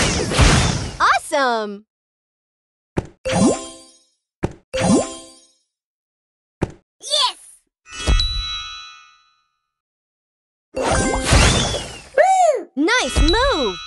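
Game blocks pop and burst with bright chiming effects.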